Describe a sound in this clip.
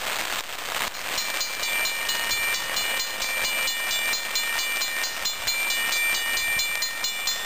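A railroad crossing bell starts clanging rapidly.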